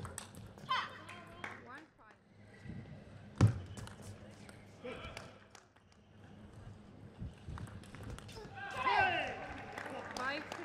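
A table tennis ball clicks back and forth on paddles and a table in a large hall.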